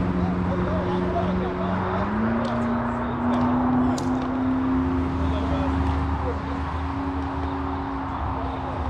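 Men shout and call to each other in the distance, outdoors.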